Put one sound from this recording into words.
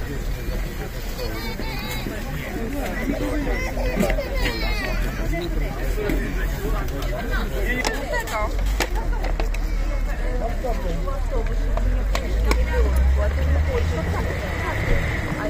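Several women and men chatter outdoors in a crowd.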